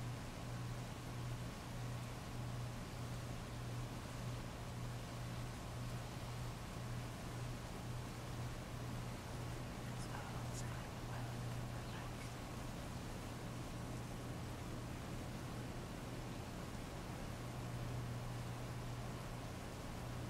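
Heavy rain pours steadily onto a paved street.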